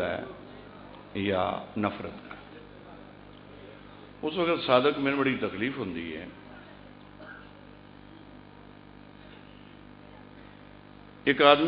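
A man speaks with feeling into a microphone, heard through loudspeakers, in long pauses between phrases.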